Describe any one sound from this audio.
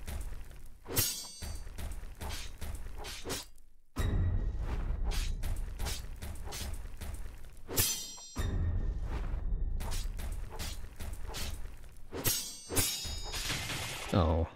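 Sharp game hits and slashes strike again and again.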